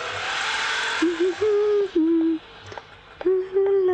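A young woman sings a melody.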